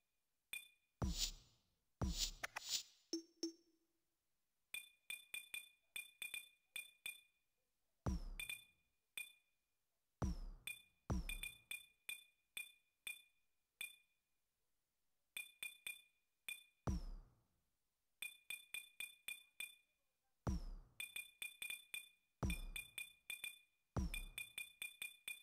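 Louder whooshing confirm sounds swell now and then.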